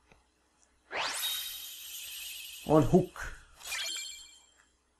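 A bright, shimmering chime rings out and fades.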